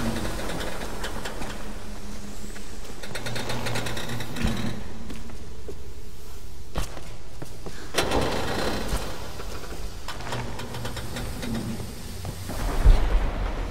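A fire crackles and hisses nearby.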